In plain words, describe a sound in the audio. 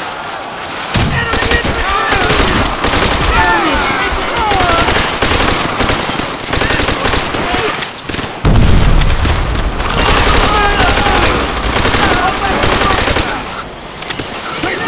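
Rapid gunfire crackles and bangs close by.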